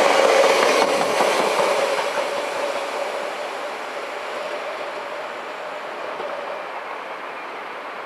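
A train pulls away and its rumble slowly fades into the distance.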